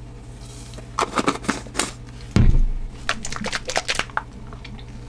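A shaker bottle rattles as it is shaken.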